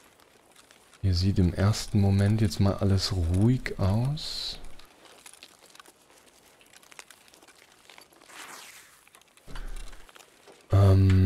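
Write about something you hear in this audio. An adult man talks with animation, close to a microphone.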